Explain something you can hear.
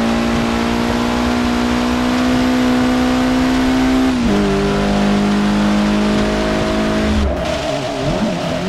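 Rain patters on a car's windscreen.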